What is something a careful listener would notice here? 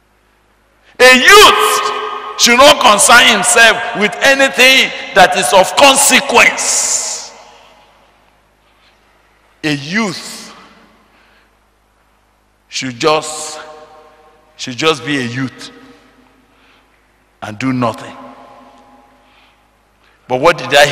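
An older man preaches with animation into a microphone, heard through loudspeakers in a large echoing hall.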